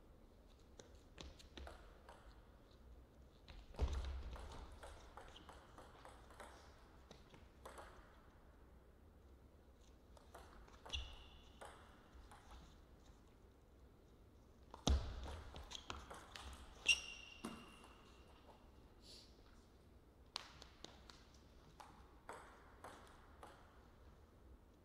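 A ping-pong ball clicks back and forth between paddles and the table.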